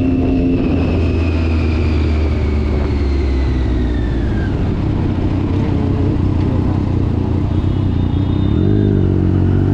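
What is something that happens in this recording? A motorcycle engine rumbles as it slows down.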